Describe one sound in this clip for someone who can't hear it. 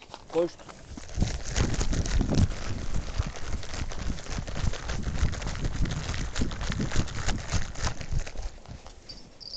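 Footsteps crunch quickly on a stone path close by.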